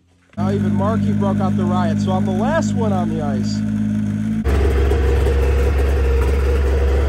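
A snowmobile engine idles steadily close by.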